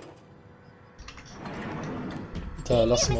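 A heavy door slides open.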